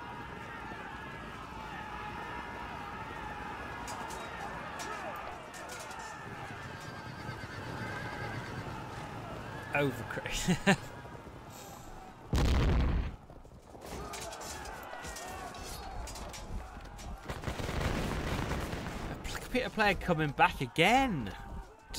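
Muskets fire in a battle.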